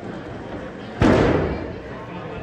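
A body slams hard onto a wrestling mat with a loud thud.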